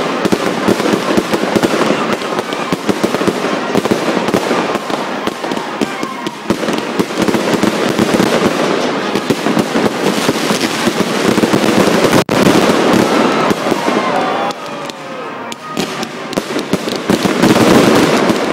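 Fireworks bang loudly overhead.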